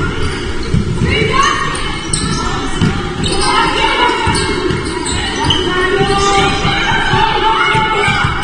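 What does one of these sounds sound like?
Spectators cheer and shout in an echoing hall.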